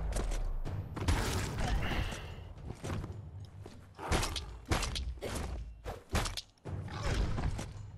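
Sharp impacts thud during a fight.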